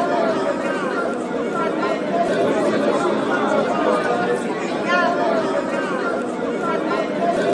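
A large crowd cheers and shouts loudly in a big hall.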